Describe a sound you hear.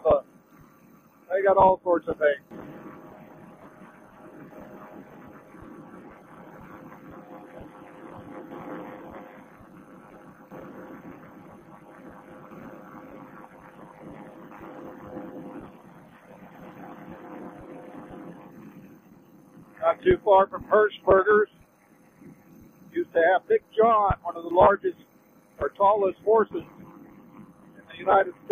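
Wind rushes steadily past during flight.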